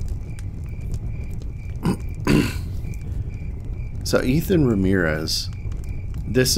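A wood fire crackles and pops softly nearby.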